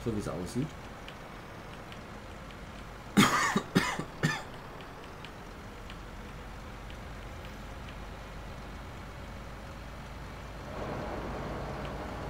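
A truck engine hums steadily as the truck drives along.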